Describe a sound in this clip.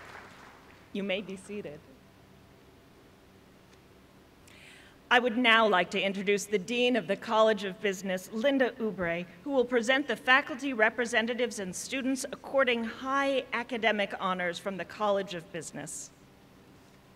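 A woman speaks calmly into a microphone over loudspeakers in a large hall.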